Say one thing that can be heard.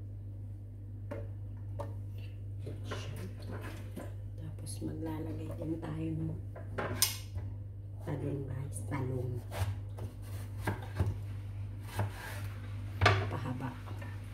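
Hands place vegetable pieces into a glass baking dish, with soft clicks and knocks.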